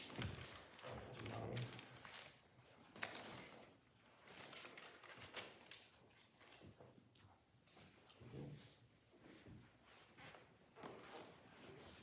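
A man reads aloud calmly in a room with a slight echo.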